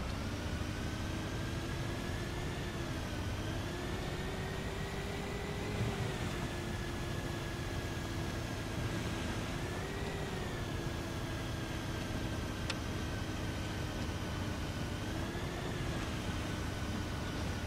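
A bus engine hums steadily, its pitch rising and falling with the speed.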